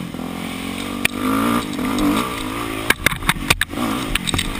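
Bumps and knocks rattle a dirt bike on a rough trail.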